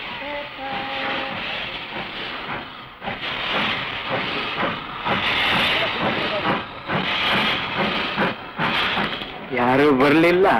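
A steam locomotive hisses and chugs.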